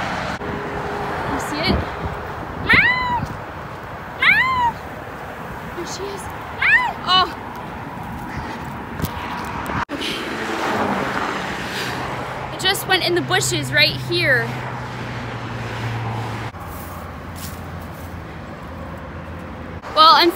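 Traffic hums steadily on a nearby road.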